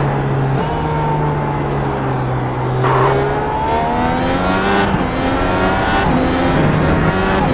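A racing car engine roars and revs higher, dropping in pitch briefly with each gear change.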